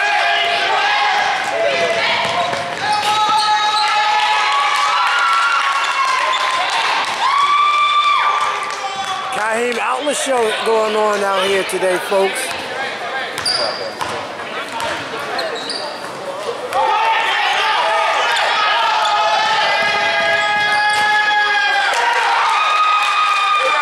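Sneakers squeak sharply on a hardwood court in an echoing gym.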